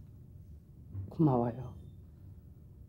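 A middle-aged woman speaks briefly and with feeling, close by.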